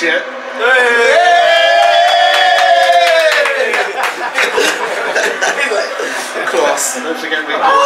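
Young men laugh loudly together.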